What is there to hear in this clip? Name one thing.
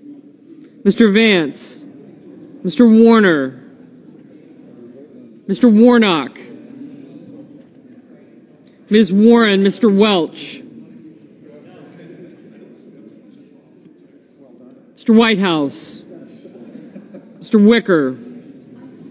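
A woman reads out in short calls through a microphone in a large echoing hall.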